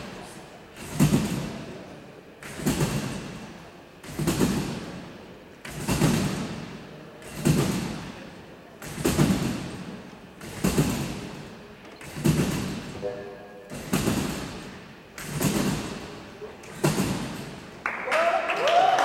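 A trampoline springs and thumps rhythmically in a large echoing hall.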